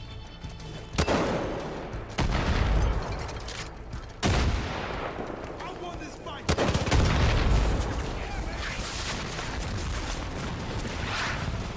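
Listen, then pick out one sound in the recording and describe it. Explosions boom and rumble, echoing off into the distance.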